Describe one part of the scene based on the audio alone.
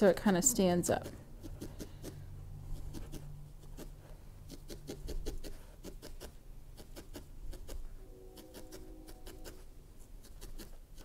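A felting needle pokes rapidly into wool with soft, repeated taps.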